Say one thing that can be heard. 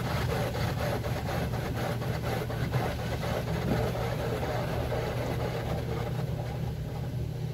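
Water sprays and drums hard on a car's windshield, heard from inside the car.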